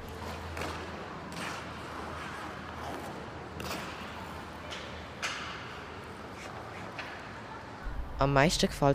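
Ice skates scrape and hiss across the ice in a large echoing hall.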